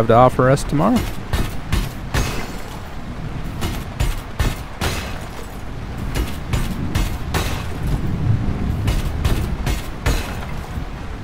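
A mining tool strikes and chips rock with sharp, rapid clangs.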